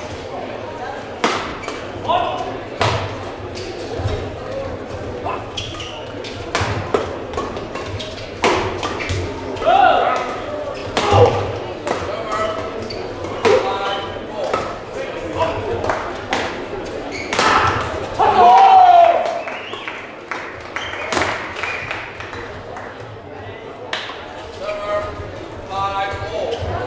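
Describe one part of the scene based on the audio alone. Rackets strike a shuttlecock with sharp pops in a large echoing hall.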